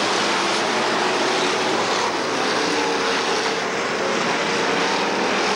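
Race car engines roar loudly around a track.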